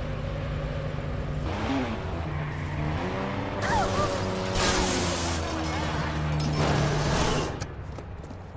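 A car engine hums and revs loudly.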